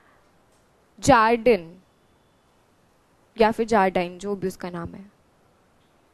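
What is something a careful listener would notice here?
A young woman speaks calmly into a close microphone.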